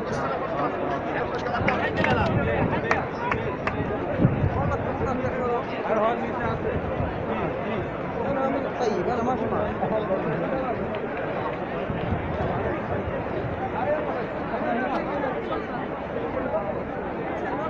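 A large crowd murmurs and chatters all around outdoors.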